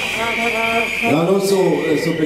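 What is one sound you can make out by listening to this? An older man speaks loudly through a microphone and loudspeakers outdoors.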